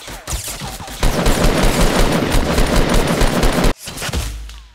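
An automatic rifle fires in rapid bursts close by.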